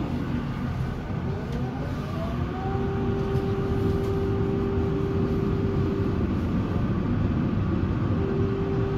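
A tram's electric motor whines, rising in pitch as the tram pulls away, then holds a steady hum.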